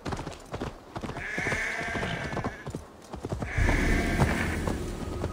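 Wind blows over open ground.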